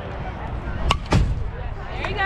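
A ball smacks sharply into a catcher's mitt.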